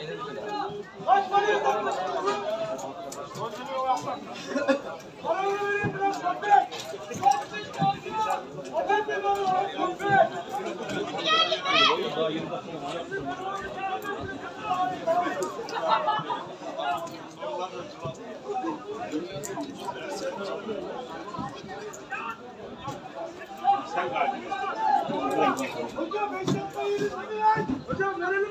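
Men talk and call out nearby with animation, outdoors.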